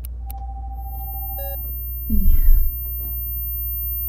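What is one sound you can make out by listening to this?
A young woman speaks quietly on a phone.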